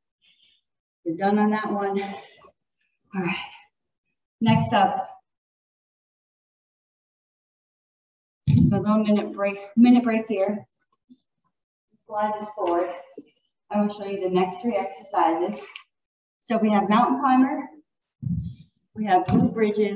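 A woman talks calmly, close to a microphone.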